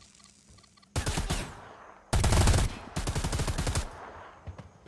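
An automatic rifle fires in rapid bursts close by.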